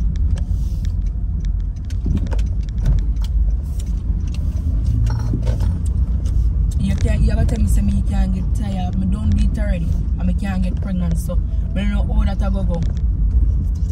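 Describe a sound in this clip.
A car engine rumbles low and steady inside the cabin.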